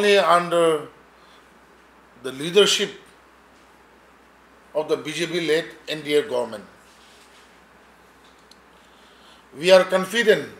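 A middle-aged man speaks calmly into microphones, with pauses.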